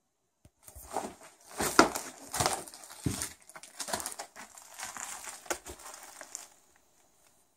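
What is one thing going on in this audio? Footsteps crunch over loose rubble and debris.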